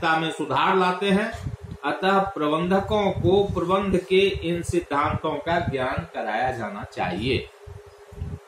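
An older man speaks calmly and close to the microphone.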